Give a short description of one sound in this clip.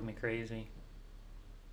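A man speaks briefly and casually into a nearby microphone.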